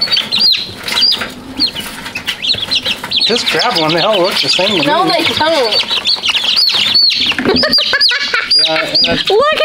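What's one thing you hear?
Many chicks peep loudly and constantly.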